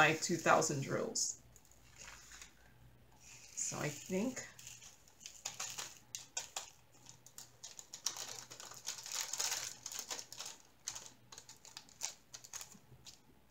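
A small plastic bag crinkles and rustles in someone's hands.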